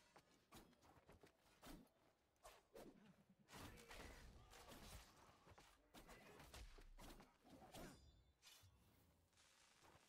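Swords clash and slash in quick blows.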